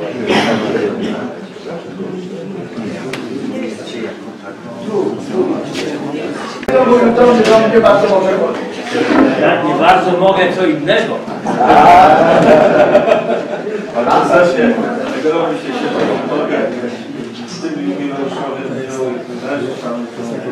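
Elderly men talk and greet one another warmly up close.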